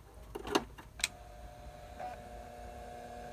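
A disk drive whirs with a steady hum.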